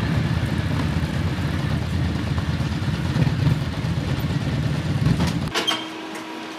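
Motorcycle engines rumble as the bikes ride away over a rough road.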